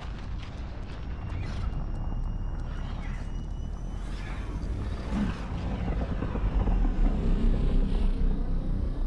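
A spacecraft roars as it flies past overhead.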